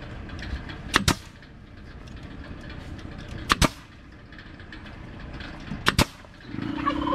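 A pneumatic staple gun fires several sharp shots.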